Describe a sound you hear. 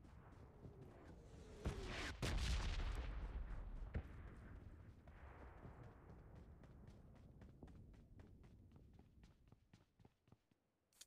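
Quick footsteps run over dirt and grass.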